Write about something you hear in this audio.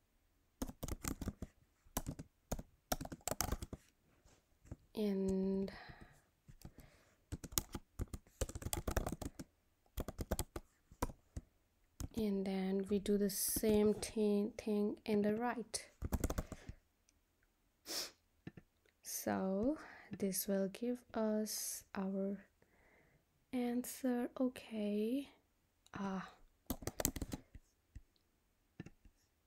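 Keys clatter on a keyboard in quick bursts.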